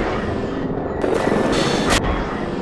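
A boat engine roars up close.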